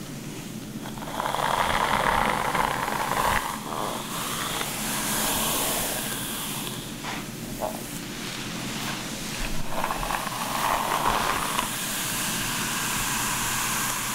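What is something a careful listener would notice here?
A brush swishes through long hair close up.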